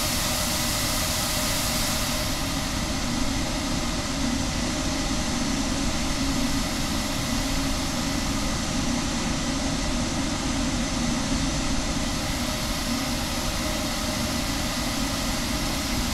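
The jet engines of a twin-engine airliner drone steadily in flight.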